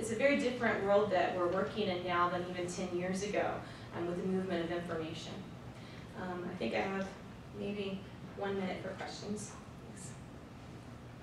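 A woman speaks calmly into a microphone, heard through loudspeakers in a large room.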